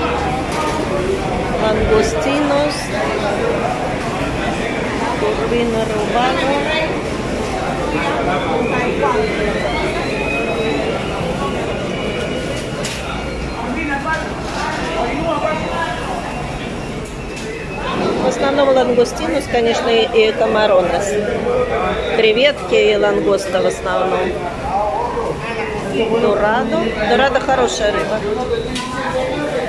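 A crowd of men and women chatter all around in a busy, echoing hall.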